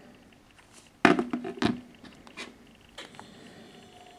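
Phones knock and clatter on a wooden table.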